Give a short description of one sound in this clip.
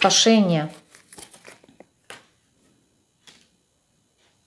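Cards softly shuffle and tap on a table.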